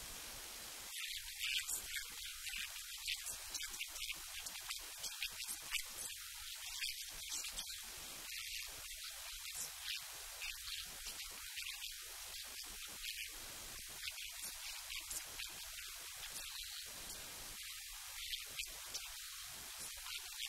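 A middle-aged woman speaks calmly into a close microphone.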